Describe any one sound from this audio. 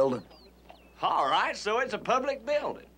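Another man answers in a relaxed voice nearby.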